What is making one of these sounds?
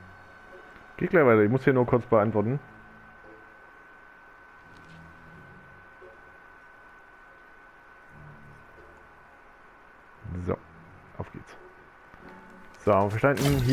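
A magical item shimmers with a soft chiming sound.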